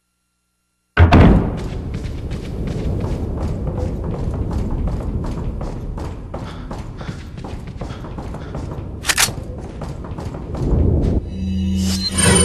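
Footsteps run across a hard floor in a game.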